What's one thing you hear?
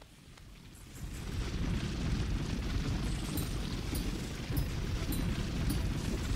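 A deep rumbling drones steadily.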